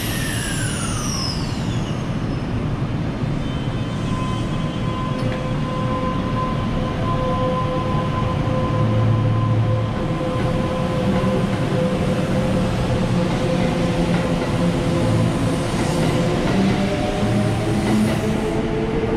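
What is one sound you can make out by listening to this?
An electric train whines as it pulls away from a platform.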